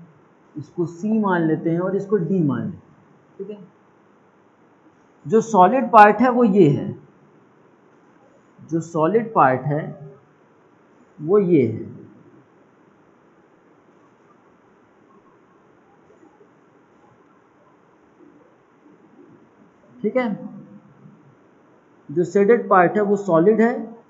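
A man speaks calmly in short bursts, close by.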